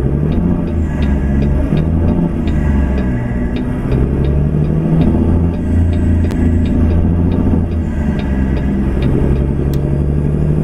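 A diesel semi truck engine drones while cruising.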